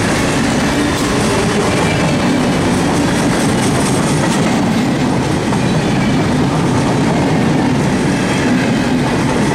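Steel wheels clatter over the rail joints.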